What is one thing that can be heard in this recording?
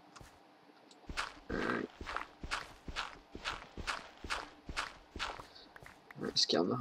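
A shovel digs into gravel with quick, repeated crunches.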